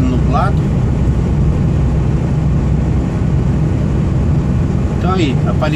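A truck engine rumbles steadily while driving on a road.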